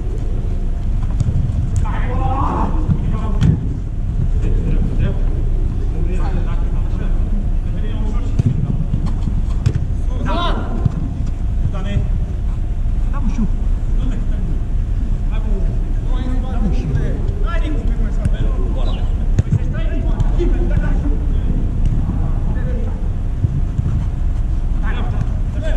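Adult men shout to each other across an echoing indoor hall.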